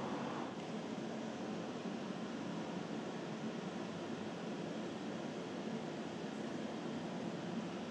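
A gorilla's hands and feet pad softly across a hard floor.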